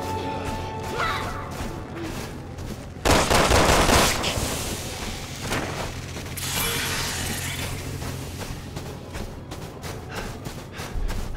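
Wind howls steadily in a snowstorm.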